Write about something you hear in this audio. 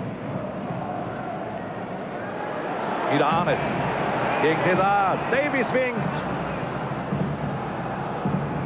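A large stadium crowd cheers and chants loudly outdoors.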